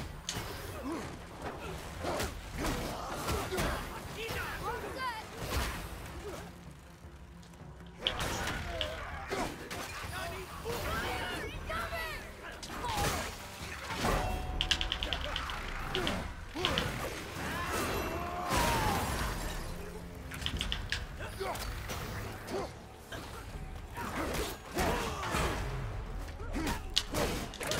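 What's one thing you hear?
Weapons clash and strike in quick, heavy blows.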